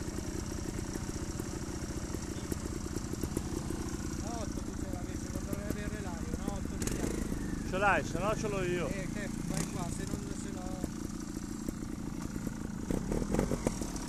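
A trials motorcycle engine idles.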